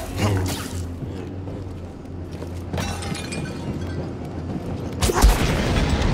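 A lightsaber swooshes through the air.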